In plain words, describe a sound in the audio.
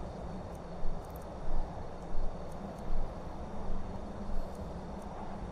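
Short soft clicks sound as items are scrolled through a game menu.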